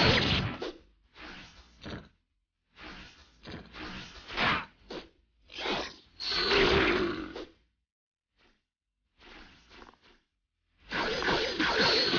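Punches and kicks land with heavy thuds and smacks.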